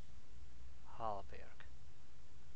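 A short menu chime sounds as a selection is made.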